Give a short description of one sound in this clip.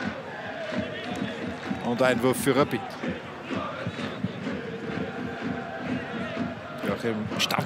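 A stadium crowd murmurs and chants steadily outdoors.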